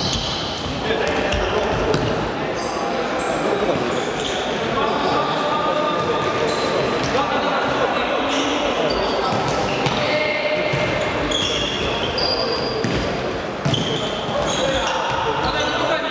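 Sports shoes squeak on an indoor hall floor.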